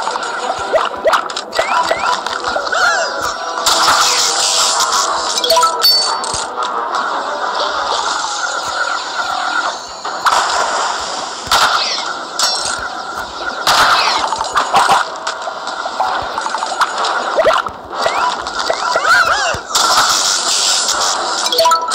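Lively electronic game music plays steadily throughout.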